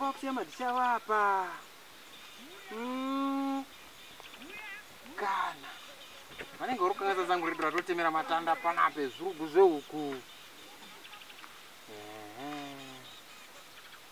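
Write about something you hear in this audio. A man speaks with animation close by, his pitch rising and falling.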